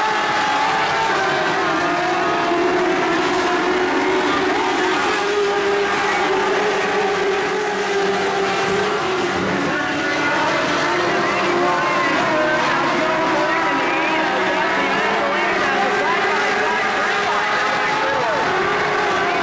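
Several race car engines roar and whine, rising and falling in pitch.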